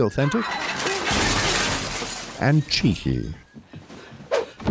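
Bodies crash heavily against furniture.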